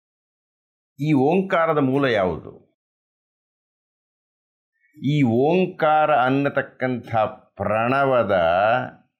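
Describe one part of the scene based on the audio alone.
An elderly man speaks calmly and expressively, close by.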